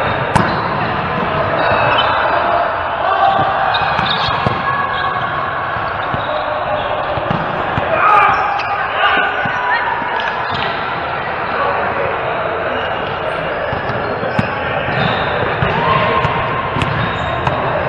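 A volleyball is struck by hand, echoing in a large hall.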